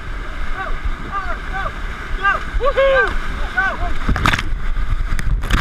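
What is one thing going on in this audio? Whitewater rapids roar and churn loudly close by.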